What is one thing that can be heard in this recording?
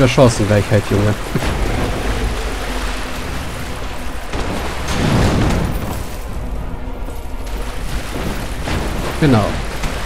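Water splashes underfoot.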